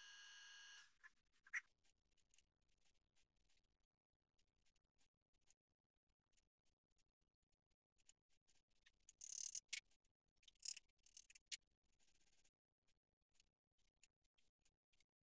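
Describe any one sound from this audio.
A wrench clicks and clinks against metal engine parts.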